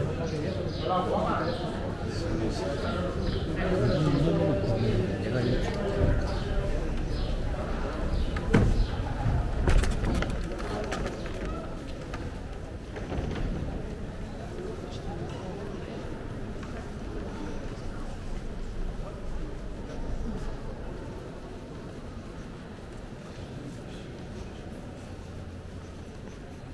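Footsteps shuffle on a stone floor.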